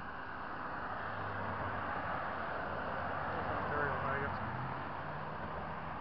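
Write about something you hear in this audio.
A pickup truck drives past close by.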